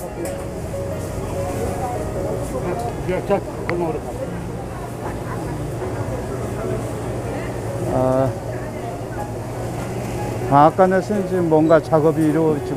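People talk in a bustling outdoor market.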